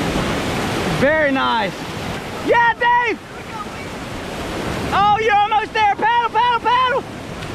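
A man nearby shouts and whoops with excitement.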